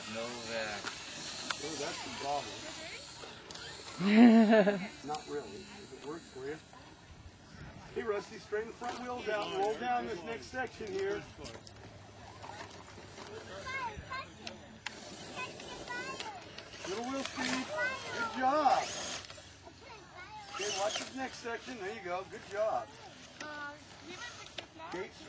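A small electric motor whines as a toy truck climbs.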